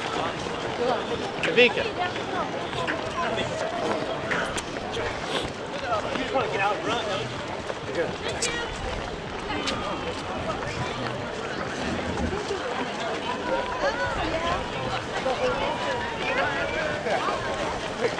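Many footsteps patter on pavement as runners pass.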